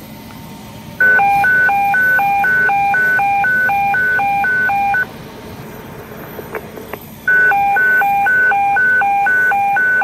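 A fire engine's alarm beeps in a fast repeating pattern.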